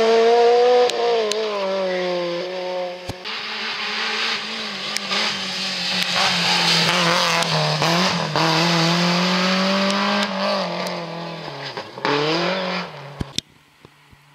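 A rally car engine revs hard and shifts gears as the car speeds past.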